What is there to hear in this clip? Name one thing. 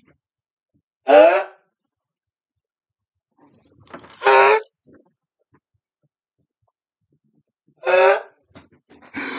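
A young man shrieks and laughs loudly into a close microphone.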